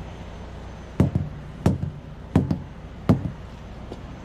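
A boot kicks a truck tyre with dull thuds.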